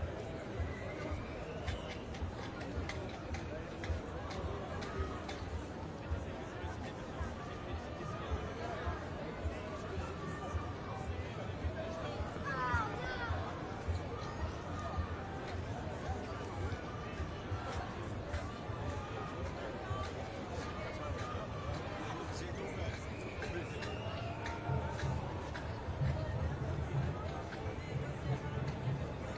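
A large crowd of protesters murmurs and chatters outdoors.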